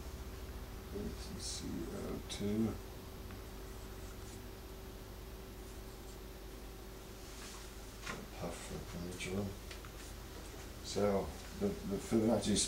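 A man speaks calmly nearby, in short bursts.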